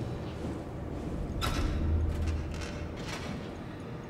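A small metal hatch clanks open.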